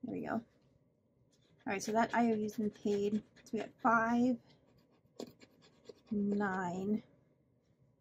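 A pen scratches lightly on a card.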